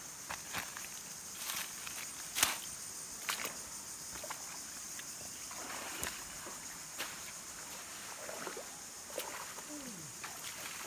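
A shallow stream trickles gently over stones.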